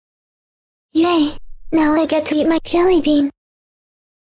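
A young girl speaks cheerfully in a synthetic voice.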